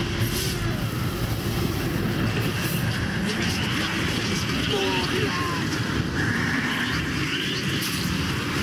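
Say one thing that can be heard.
Creatures snarl and screech in a fight.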